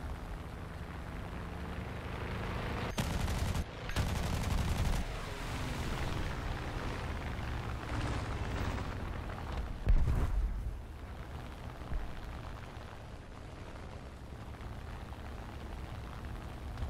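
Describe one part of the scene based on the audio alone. A propeller plane's engine roars steadily.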